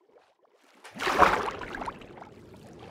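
Water splashes as a swimmer plunges under the surface.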